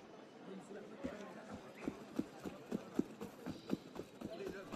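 Running footsteps patter quickly on cobblestones.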